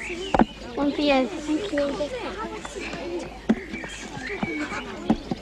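Young children chatter nearby outdoors.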